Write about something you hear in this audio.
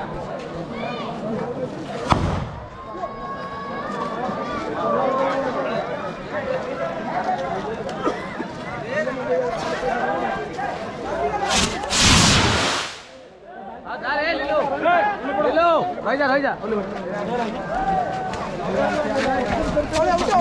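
A crowd shouts and chatters outdoors.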